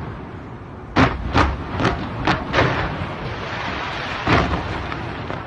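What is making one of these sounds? Fireworks boom in sharp loud blasts.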